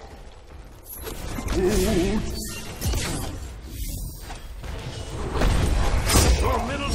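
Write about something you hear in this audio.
Magic blasts whoosh and crash in a fight.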